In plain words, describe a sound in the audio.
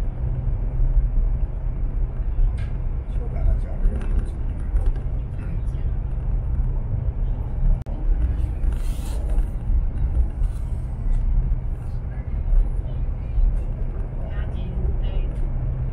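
A train rumbles steadily at speed, heard from inside a carriage.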